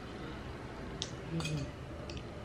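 A metal spoon clinks against a dish.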